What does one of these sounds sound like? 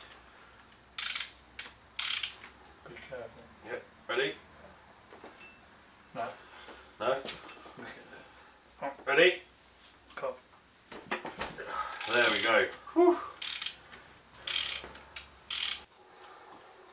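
A ratchet wrench clicks as it turns a bolt.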